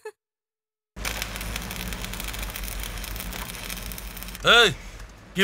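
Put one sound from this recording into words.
An arc welder crackles and hisses steadily.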